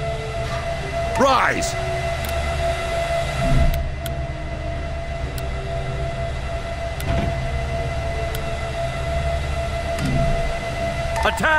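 A low hum drones steadily.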